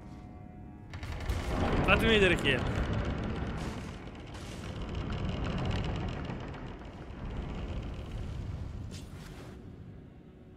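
A heavy stone door grinds and rumbles open.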